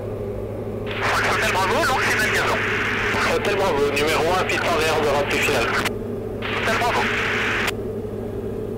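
A man talks calmly over a headset intercom.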